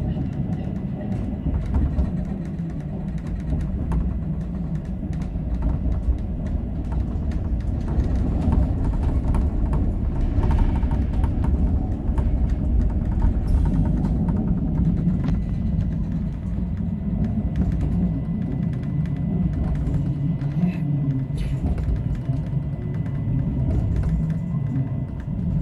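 A train rumbles steadily along the rails, heard from inside the cab.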